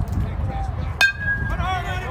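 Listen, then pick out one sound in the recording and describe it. A softball bat cracks against a ball outdoors.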